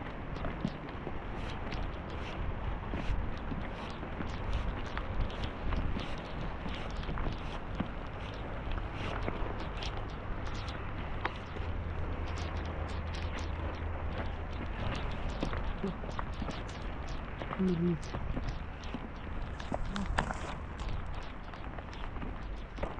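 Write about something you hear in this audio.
Footsteps crunch on stony ground.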